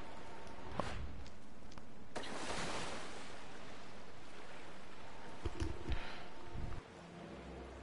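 Water sloshes as someone wades through it.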